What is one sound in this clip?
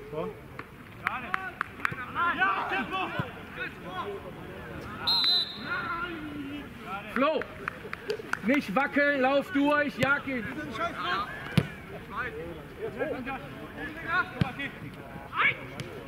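Men shout across an open playing field.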